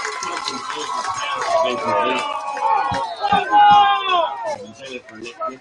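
A crowd of young men shout and cheer loudly outdoors.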